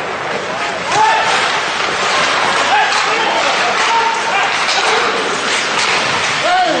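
Hockey sticks knock against a puck.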